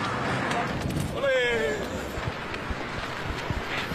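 A football is kicked on pavement.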